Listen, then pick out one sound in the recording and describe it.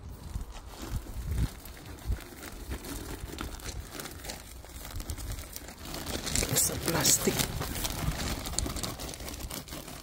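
Potting soil pours and patters into a plastic pot.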